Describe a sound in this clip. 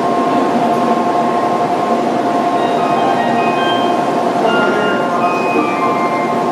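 A train rolls slowly along a platform with a rising electric whine.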